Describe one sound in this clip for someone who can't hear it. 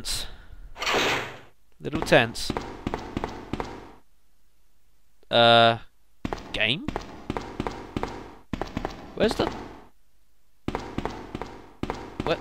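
Footsteps echo on a hard stone floor.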